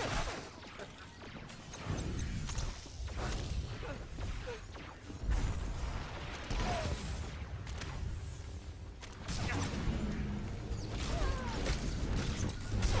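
Lightsabers hum and clash in a fight.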